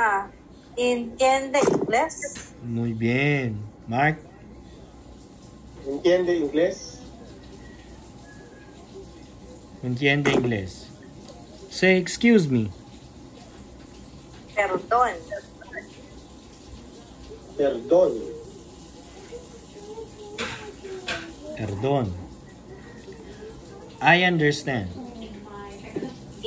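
A man speaks in short phrases with pauses through an online call.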